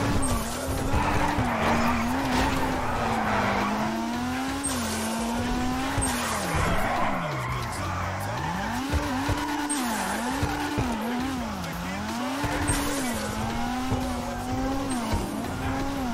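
A car engine revs hard, its pitch rising and falling again and again.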